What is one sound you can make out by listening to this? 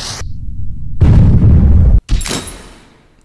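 A bomb explodes with a loud boom.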